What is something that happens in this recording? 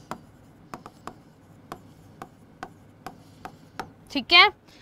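A stylus taps and knocks against a glass board.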